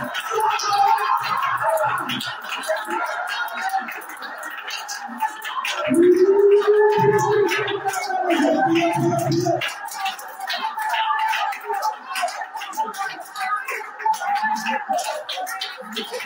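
A crowd of men and women pray aloud together, overlapping, in an echoing room.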